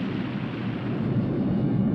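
A young woman screams in fright.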